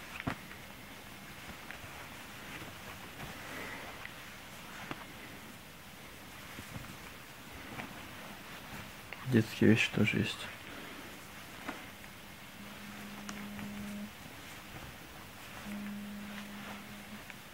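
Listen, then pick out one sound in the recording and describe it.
Clothes rustle softly as hands sort through them.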